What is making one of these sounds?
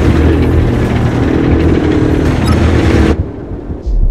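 A spacecraft engine roars loudly.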